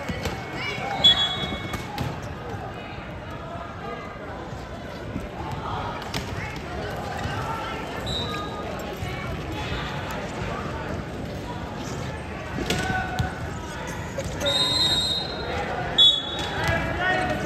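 Wheelchair tyres squeak sharply on a hard court.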